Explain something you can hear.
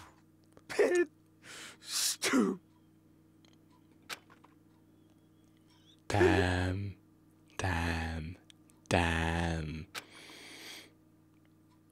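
A young man exclaims and laughs loudly into a close microphone.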